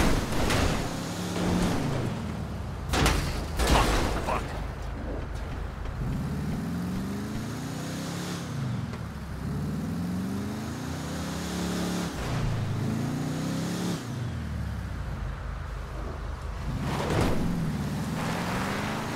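A car engine revs up and down repeatedly.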